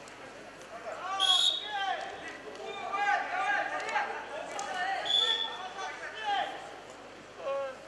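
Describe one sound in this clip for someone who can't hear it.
A crowd in a large echoing hall shouts and cheers.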